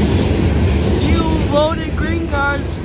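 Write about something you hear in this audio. Steel wheels squeal against the rails.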